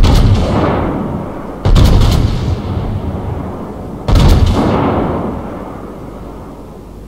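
Heavy guns fire in loud booming blasts that rumble and fade.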